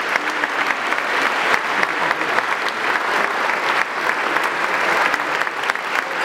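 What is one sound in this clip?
A large crowd applauds loudly in an echoing hall.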